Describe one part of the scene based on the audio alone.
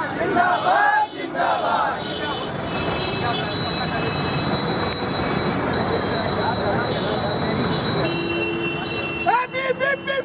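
A crowd clamours noisily outdoors.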